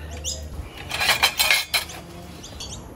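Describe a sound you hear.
A metal spatula clatters against a plate.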